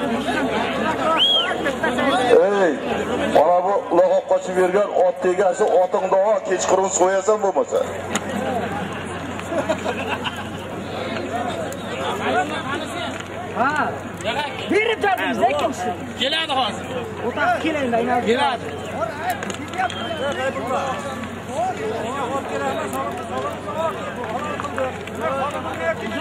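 A crowd of men shouts and talks outdoors.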